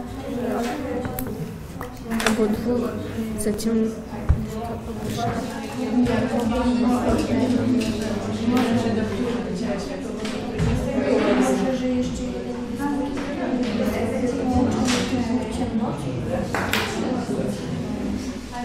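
A woman speaks calmly to a group.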